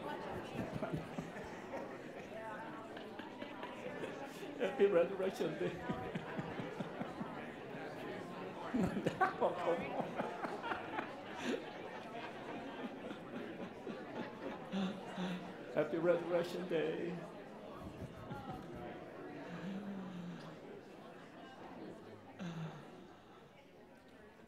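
A crowd of people chatter and murmur in a large echoing hall.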